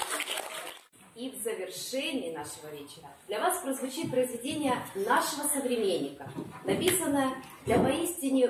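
A young woman announces to an audience, close by.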